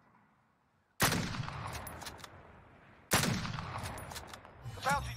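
A sniper rifle fires two loud shots that echo and roll away.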